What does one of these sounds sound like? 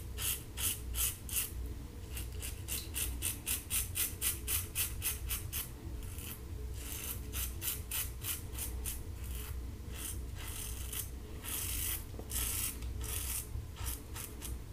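A razor scrapes through stubble in short, quick strokes, close by.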